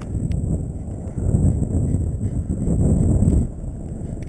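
A dog pants softly.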